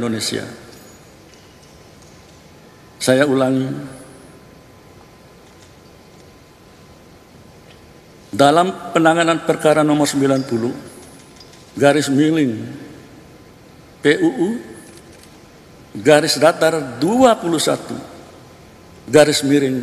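A middle-aged man reads out slowly and formally into a microphone, with long pauses.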